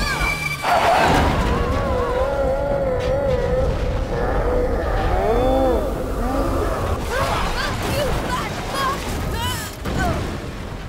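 A large bird screeches.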